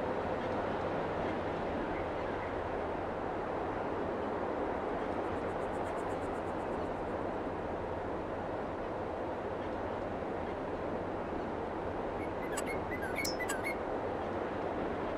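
A man talks calmly into a microphone.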